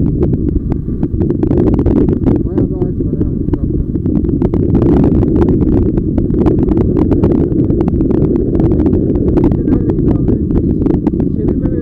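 Wind roars loudly against the microphone of a moving motorcycle.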